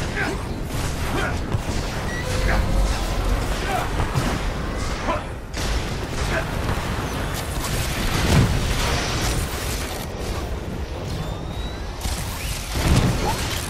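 Energy blasts fire in rapid bursts.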